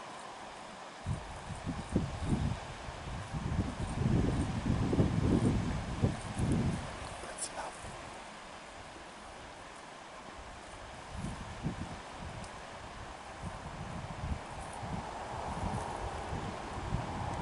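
A bear tears and munches grass close by.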